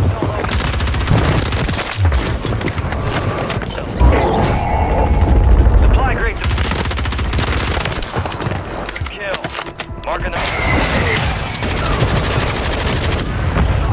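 Rapid automatic gunfire rattles in repeated bursts.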